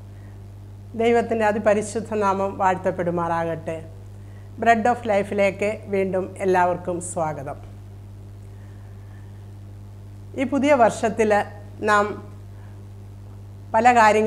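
An elderly woman speaks calmly and close to a microphone.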